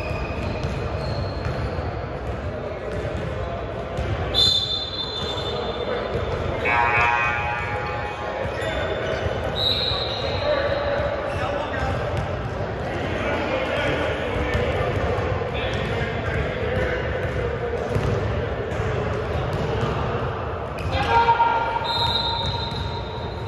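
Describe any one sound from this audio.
Players and spectators chatter in the background.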